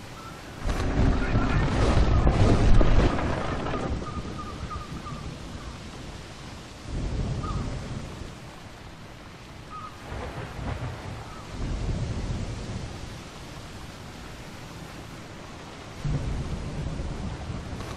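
Waves splash and wash against a ship's hull.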